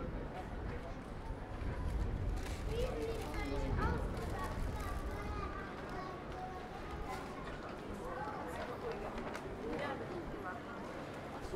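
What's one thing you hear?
A busy crowd murmurs and chatters outdoors.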